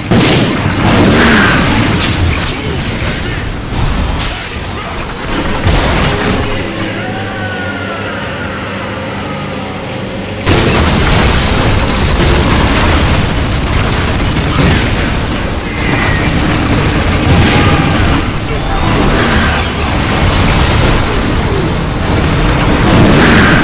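Explosions boom and crash.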